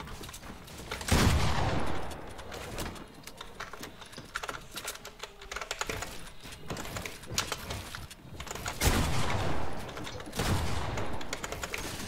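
A pickaxe thuds repeatedly against wooden walls.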